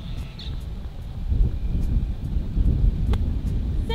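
A golf club thuds into sand.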